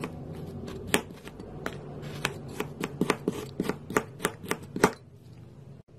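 A knife chops through frozen paint chunks, tapping against a hard surface.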